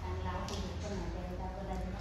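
Water splashes onto a wall from a jug.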